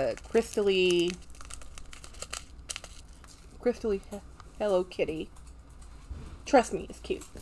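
Paper rustles in a woman's hands.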